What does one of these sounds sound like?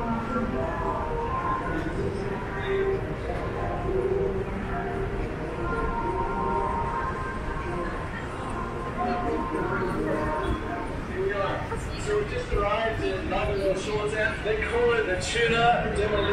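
Voices of passers-by murmur along a busy street.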